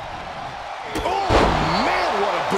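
A kick lands on a body with a heavy thud.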